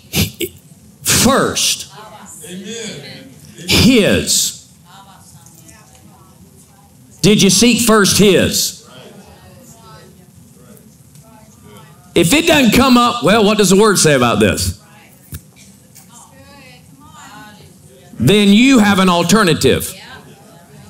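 A man speaks with animation into a microphone, heard over loudspeakers in a large hall.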